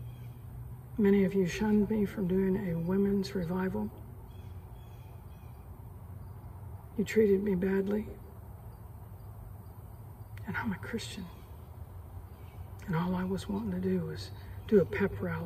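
A middle-aged woman speaks calmly and close into a microphone, with pauses between phrases.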